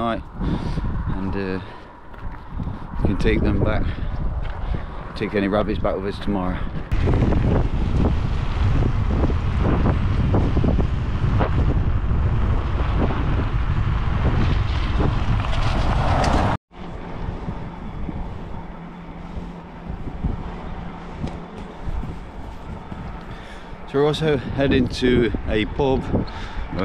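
A man talks closely and out of breath into a microphone.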